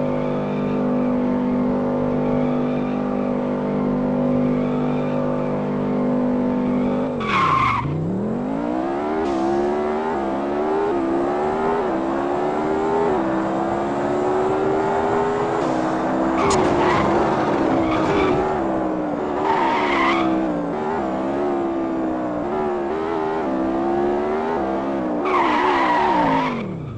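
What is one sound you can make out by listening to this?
A sports car engine drones at high revs, then drops and climbs again through the gears.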